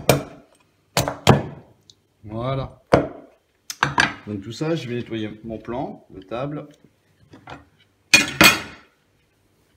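A knife cuts on a wooden board.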